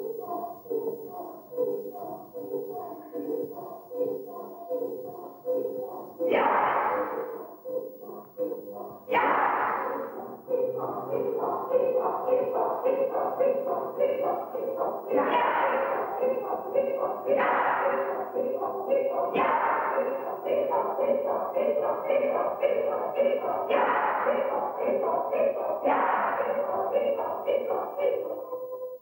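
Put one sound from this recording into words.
A group of musicians plays a steady, rhythmic tune in a large echoing hall.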